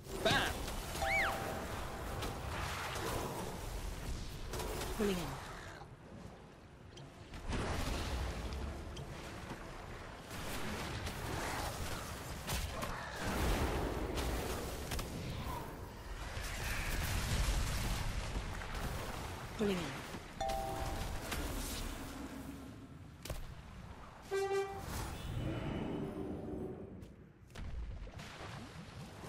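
Magic spells whoosh, crackle and boom in a fast fantasy battle.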